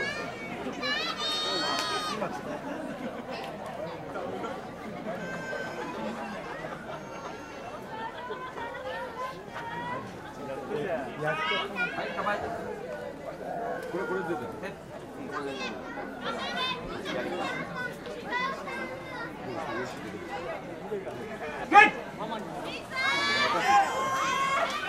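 Spectators cheer and shout loudly.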